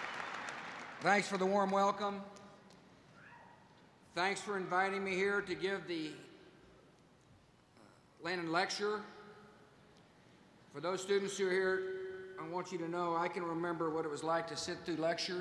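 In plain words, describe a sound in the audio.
A middle-aged man speaks calmly through a microphone, with pauses.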